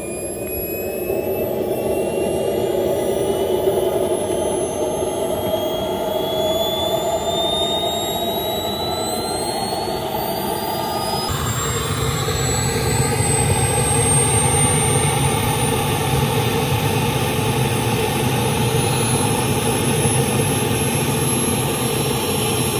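A small jet turbine whines loudly and steadily, its high pitch slowly rising.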